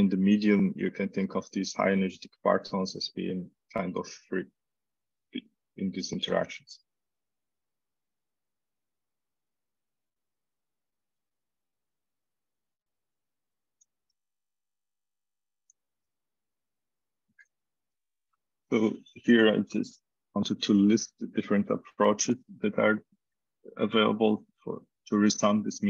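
A man lectures calmly over an online call.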